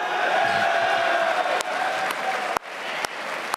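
Young men cheer loudly and excitedly in a large hall.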